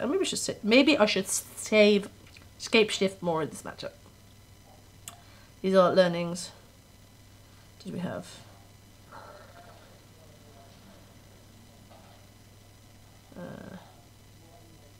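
A young woman speaks casually into a nearby microphone, with pauses.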